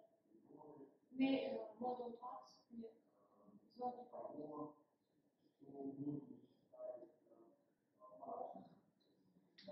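A woman speaks in pauses, somewhat distant in a room.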